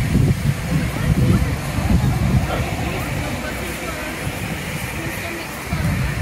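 A steam locomotive rumbles slowly toward the platform.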